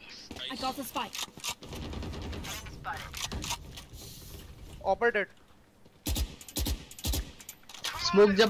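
Gunshots fire in short, sharp bursts.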